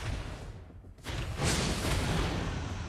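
A game character's attack blasts with whooshing, crackling effects.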